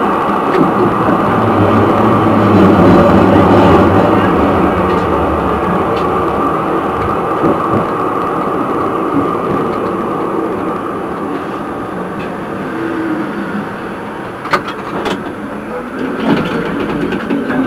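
Tram wheels clack over rail joints.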